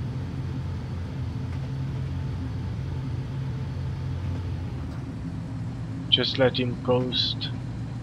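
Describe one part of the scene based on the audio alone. A train engine hums low and steady.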